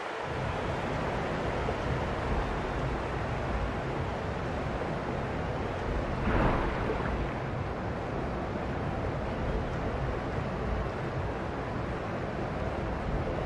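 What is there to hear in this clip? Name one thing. Water rushes and roars steadily, muffled as if underwater.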